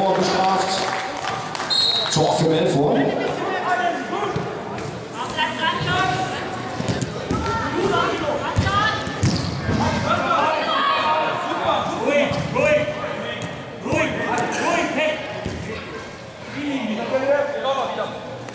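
Men shout and call to each other in a large echoing hall.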